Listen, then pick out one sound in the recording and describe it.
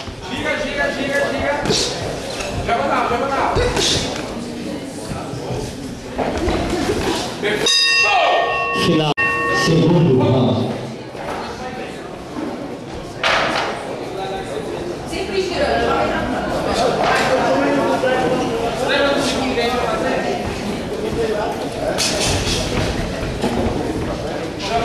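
A crowd of spectators shouts and cheers around a boxing ring.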